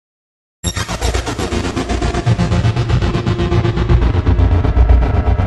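Dance music with a steady, fast beat plays loudly through loudspeakers.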